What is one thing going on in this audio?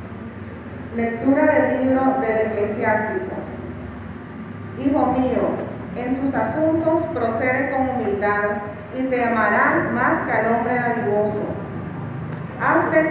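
A young woman reads out through a microphone, heard over a loudspeaker in an echoing room.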